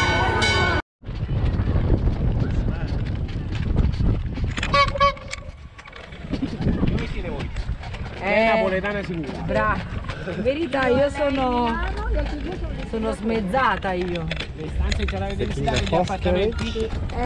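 A small open cart rolls steadily along a paved path.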